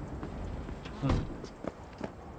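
A car's rear hatch slams shut with a heavy thud.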